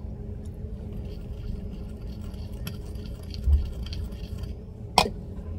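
A spoon stirs and scrapes in a glass bowl.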